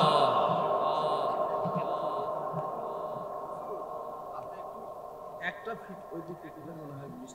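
A man preaches loudly into a microphone, heard through loudspeakers with a strong echo.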